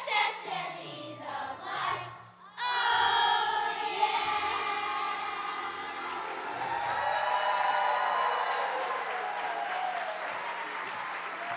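A large choir of children sings loudly through microphones in a large echoing hall.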